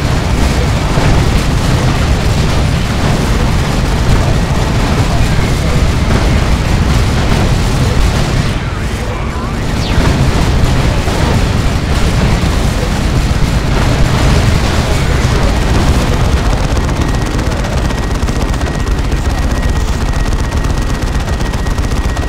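Gunfire rattles in a battle.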